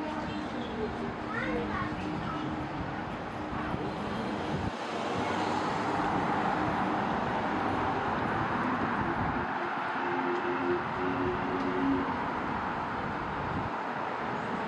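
Footsteps walk along a pavement.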